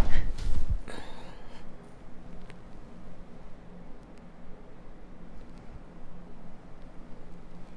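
Fingers softly rustle through hair.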